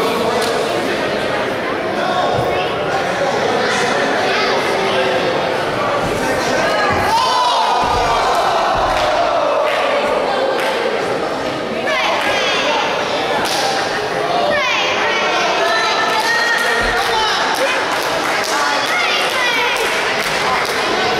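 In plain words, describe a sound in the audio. A small crowd shouts and cheers in a large echoing hall.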